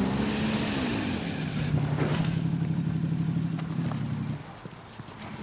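A motorcycle engine rumbles and then cuts off.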